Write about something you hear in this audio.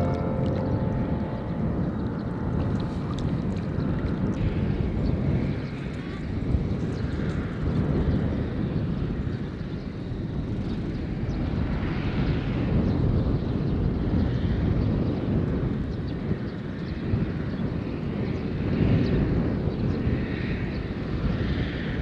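Water ripples and laps gently.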